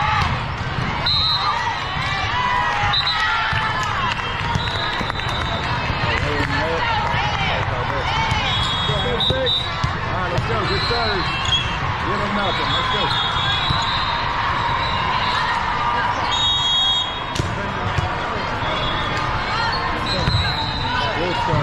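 A referee's whistle blows in short blasts.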